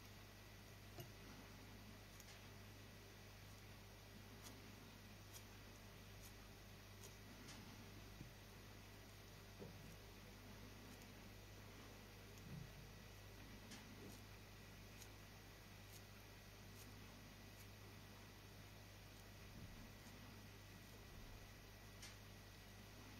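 Small soft ticks and snips come now and then close by.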